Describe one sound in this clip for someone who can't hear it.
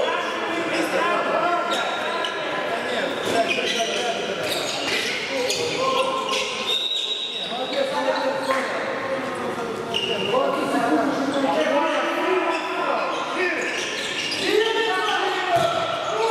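Men shout to each other across a large echoing hall.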